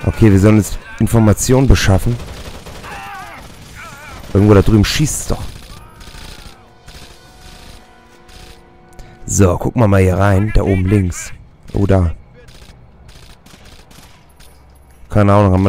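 A rifle fires short bursts.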